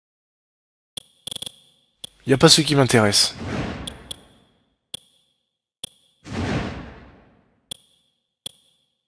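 Short electronic menu clicks sound repeatedly.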